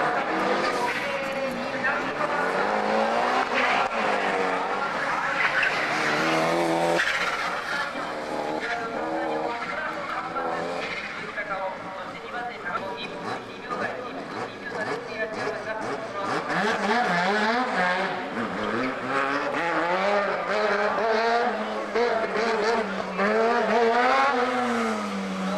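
A race car engine revs hard and whines up and down as it drifts through corners.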